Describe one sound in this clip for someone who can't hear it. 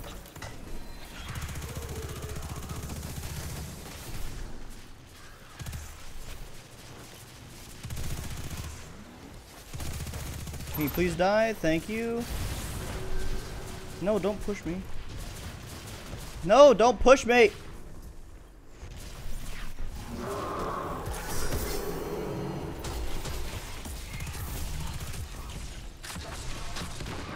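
Video game gunfire and explosions boom and crackle.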